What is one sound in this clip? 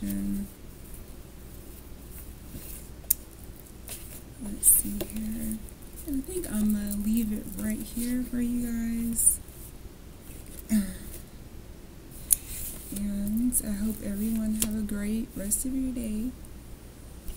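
A young woman talks casually and close to a microphone.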